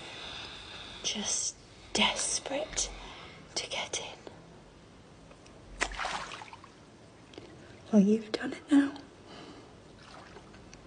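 A young man sniffs and breathes heavily while crying.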